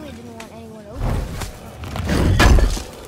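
A heavy stone lid grinds and thuds open.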